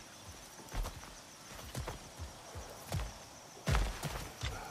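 Heavy footsteps thud on rocky ground.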